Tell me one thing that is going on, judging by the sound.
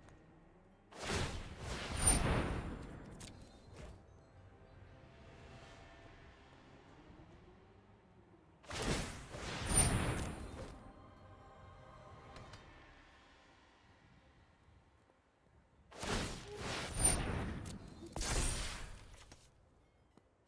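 Game sound effects whoosh and boom as cards are played.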